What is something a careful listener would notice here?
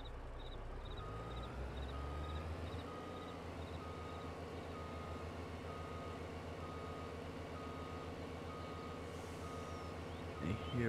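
A truck's reverse alarm beeps repeatedly.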